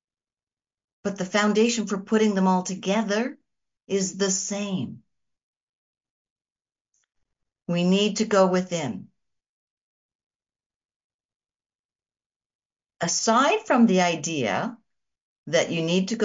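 A middle-aged woman speaks calmly and warmly into a microphone, in short phrases with pauses.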